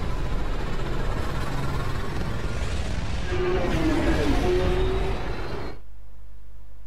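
A spaceship engine roars with a deep, rushing hum.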